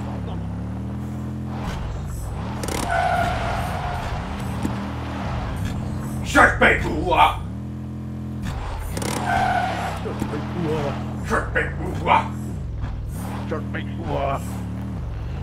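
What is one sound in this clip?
A buggy engine hums and revs up and down.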